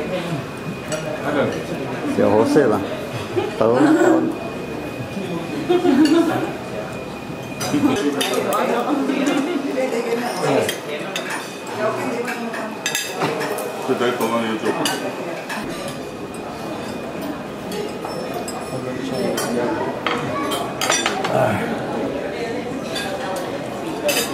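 People chatter in the background.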